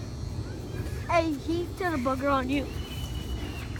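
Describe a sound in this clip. A young child shouts excitedly close by.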